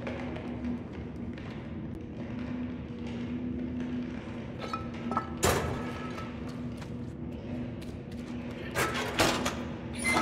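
Small footsteps patter softly on a hard floor.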